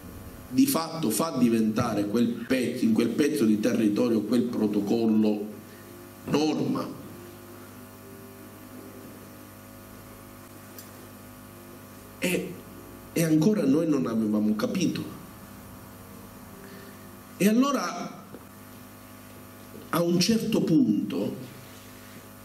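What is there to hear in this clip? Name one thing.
A middle-aged man speaks with animation into a microphone, heard through loudspeakers in an echoing hall, with pauses between phrases.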